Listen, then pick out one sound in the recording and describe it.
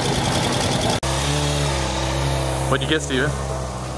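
A sports motorcycle engine idles with a smooth, steady hum.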